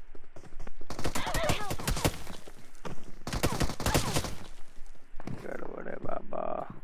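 A young man talks into a headset microphone with animation.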